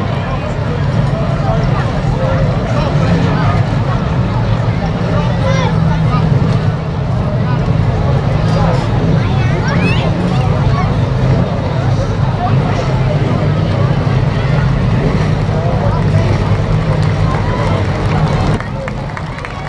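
Car engines roar loudly and steadily.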